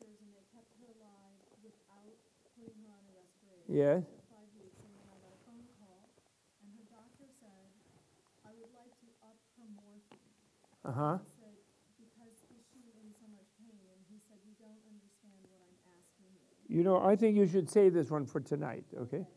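A man talks calmly and softly, heard from a distance.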